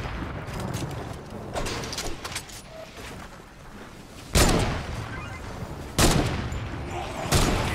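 A pickaxe strikes a wall with heavy, crunching thuds.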